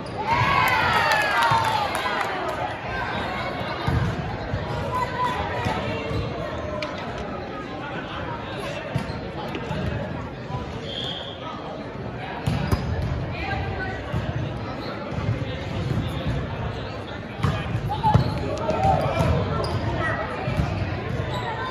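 Young women call out and chatter in a large echoing gym.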